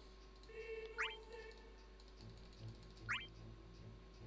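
Short rising electronic chimes sound from a game menu.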